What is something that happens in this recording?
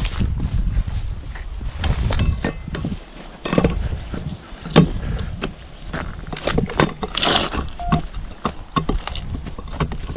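A metal lid scrapes and clunks against concrete.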